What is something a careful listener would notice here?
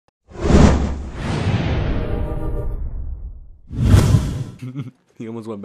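A loud whoosh sweeps past and ends in a deep boom.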